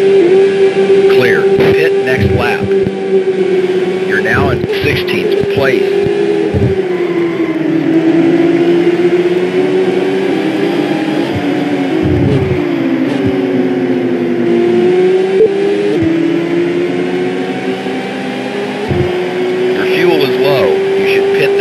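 A racing car engine drones loudly at high speed, its pitch rising and falling slightly.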